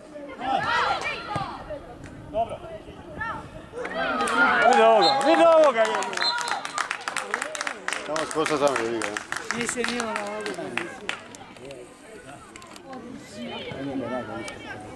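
Young players shout and cheer loudly outdoors.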